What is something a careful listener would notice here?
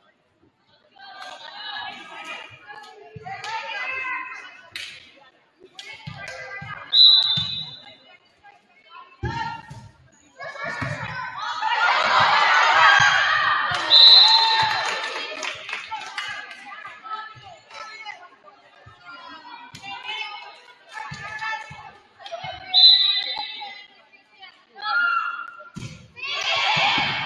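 Young women shout and call out across a large echoing gym.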